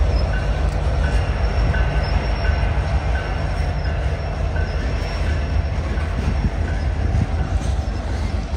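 Diesel locomotives rumble past with a deep, steady engine drone.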